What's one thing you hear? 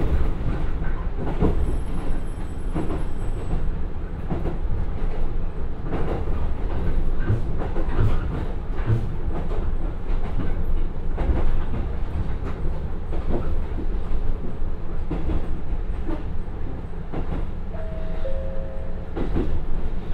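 A diesel train engine rumbles steadily as the train rolls along the track.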